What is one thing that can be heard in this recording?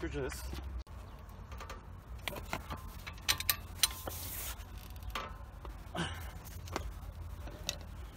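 A breaker bar clicks and clanks against a metal wheel hub.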